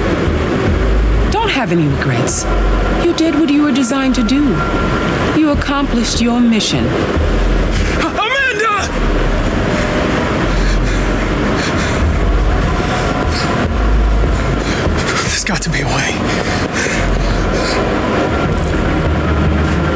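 A strong wind howls steadily through a snowstorm.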